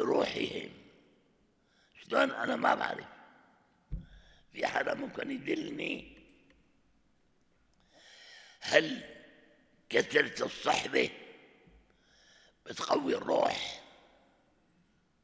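An elderly man speaks slowly and deliberately into a microphone, in short phrases with pauses.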